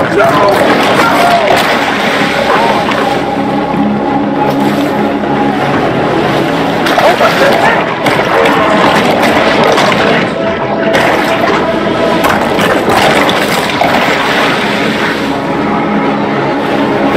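Water splashes as a shark swims through waves.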